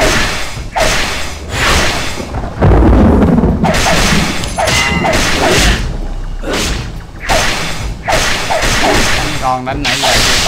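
Magic spell blasts whoosh and crackle in bursts.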